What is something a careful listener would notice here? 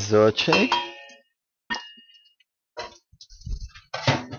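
A wooden spoon stirs vegetables in a pot.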